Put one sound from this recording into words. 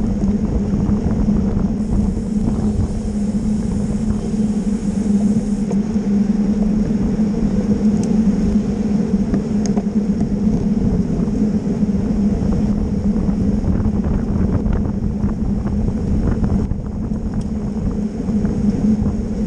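Wind rushes loudly past, outdoors.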